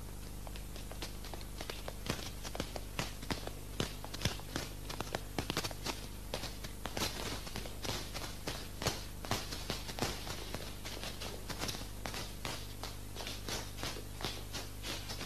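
Shoes tap quickly on a hard floor.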